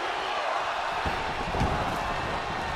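A heavy body slams onto a wrestling ring mat with a deep thud.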